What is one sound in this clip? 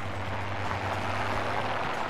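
An airplane drones by overhead.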